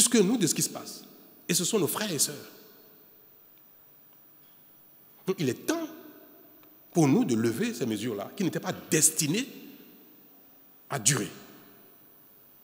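A man speaks forcefully into a microphone in an echoing room, with pauses between phrases.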